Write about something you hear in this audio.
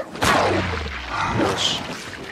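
A metal pipe thuds heavily into a body.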